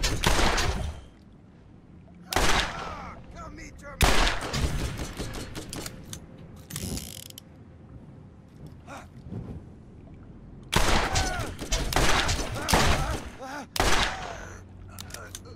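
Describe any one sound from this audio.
A sniper rifle fires loud booming shots that echo away.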